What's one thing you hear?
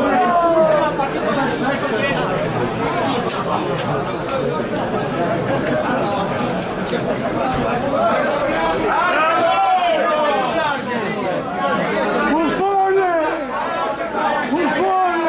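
A crowd chatters and calls out at a distance.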